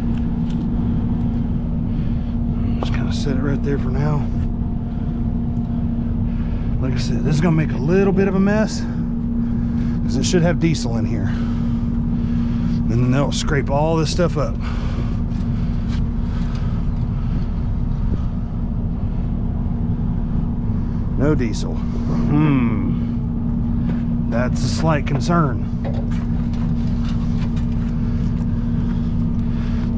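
A truck engine idles with a steady hum.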